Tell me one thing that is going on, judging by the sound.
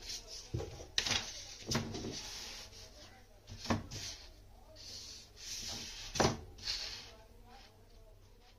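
A marker squeaks as it draws lines on paper.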